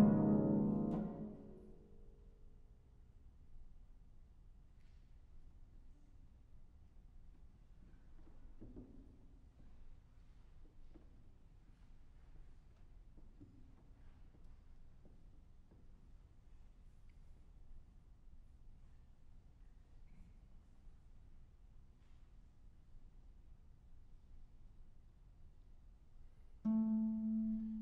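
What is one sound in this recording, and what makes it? A harp plays resonant plucked chords in a large echoing hall.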